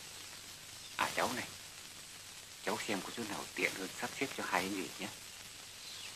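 A man speaks calmly and close by, over a steady hiss.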